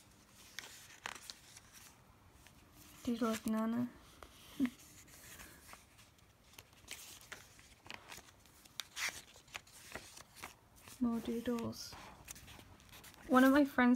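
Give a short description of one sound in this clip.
Paper pages rustle and flip as a notebook is leafed through.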